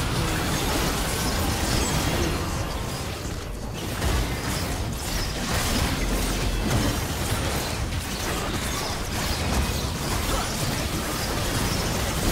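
Magic spells burst and crackle amid a hectic fantasy battle.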